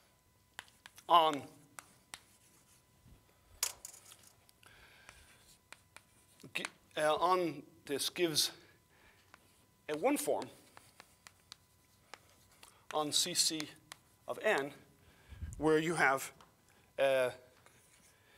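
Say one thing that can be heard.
An older man speaks calmly in short phrases with long pauses, heard through a microphone.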